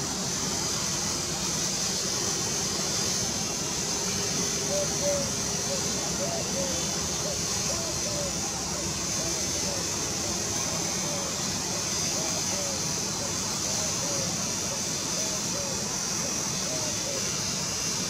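A train rumbles slowly toward a platform.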